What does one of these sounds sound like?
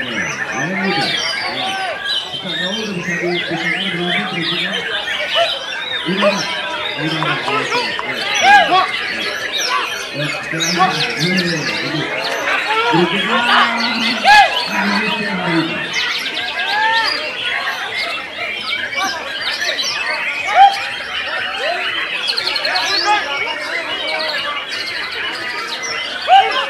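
A songbird sings with fast, loud whistles and trills.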